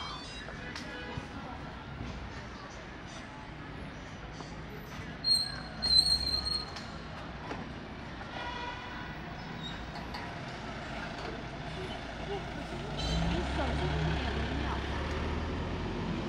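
Traffic hums steadily along a city street outdoors.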